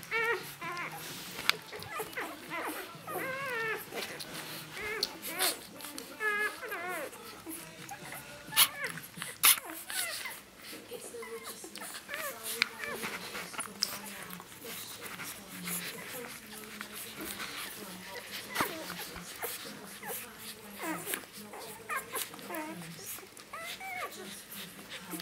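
Puppies suckle with soft wet smacking sounds.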